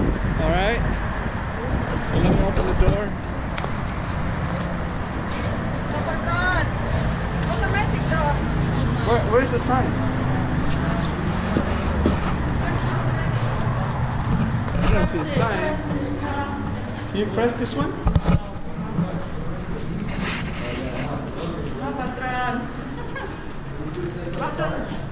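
Children and adults talk nearby.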